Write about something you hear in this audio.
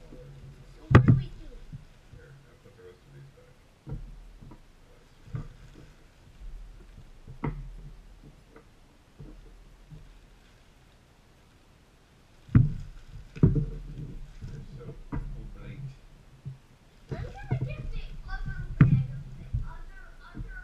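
Objects knock on a wooden table.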